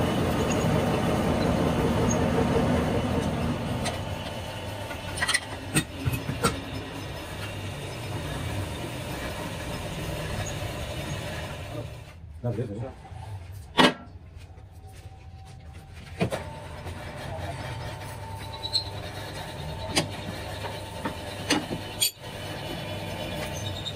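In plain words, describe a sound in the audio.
A lathe motor hums and whirs steadily.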